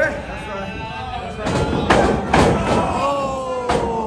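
A body slams hard onto a wrestling ring mat with a loud thud.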